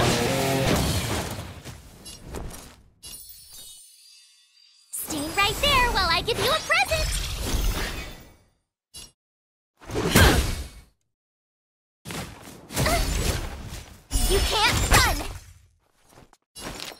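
Sword slashes whoosh through the air.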